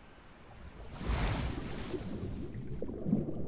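Water splashes loudly as a swimmer plunges under the surface.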